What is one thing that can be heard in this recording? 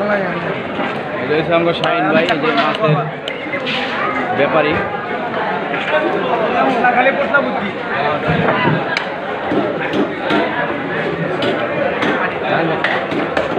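A large knife chops and scrapes through a big fish.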